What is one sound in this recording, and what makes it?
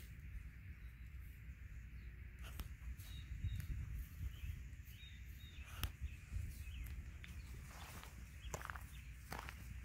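Horses' hooves thud softly on grass.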